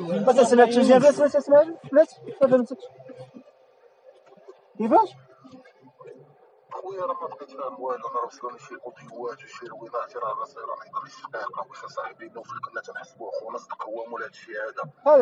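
Several young men talk and laugh together close by.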